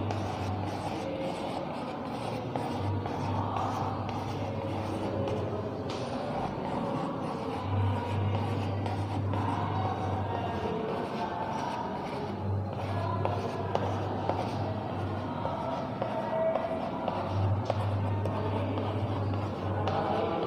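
Chalk taps and scratches against a board in quick, light strokes.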